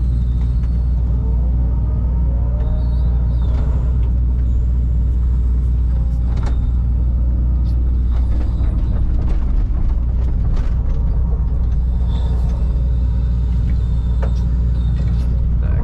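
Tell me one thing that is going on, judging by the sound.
Hydraulics whine as an excavator arm swings and lifts.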